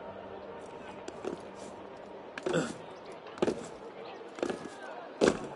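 A climber's hands and feet thud and scrape against stone.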